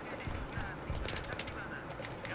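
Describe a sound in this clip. A rifle fires several quick shots.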